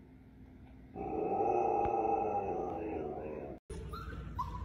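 A husky howls and whines in a drawn-out moan.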